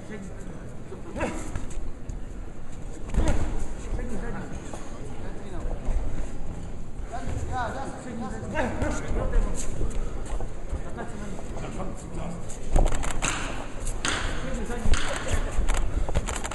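Punches thud against gloves and bodies.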